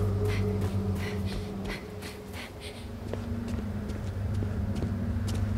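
Quick footsteps run over soft ground, then slow to a walk.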